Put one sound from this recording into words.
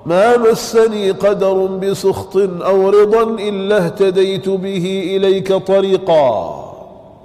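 A man speaks into a microphone in a steady, chanting tone.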